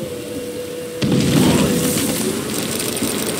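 A fire bursts up with a loud whoosh and crackles.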